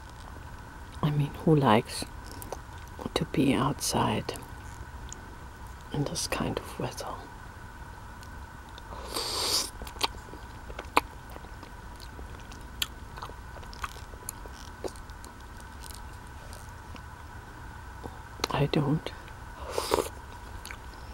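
A middle-aged woman speaks softly, very close to a microphone.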